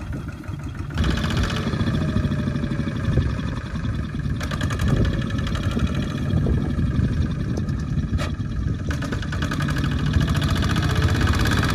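A small tractor engine chugs loudly close by.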